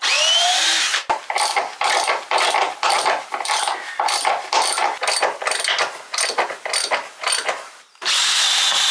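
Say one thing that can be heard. A cordless drill runs in short, rapid bursts.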